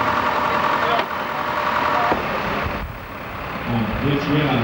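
A tractor engine roars loudly nearby.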